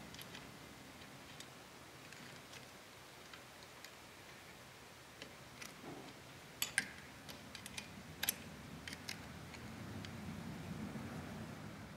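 Metal tools clink and click against a small engine part.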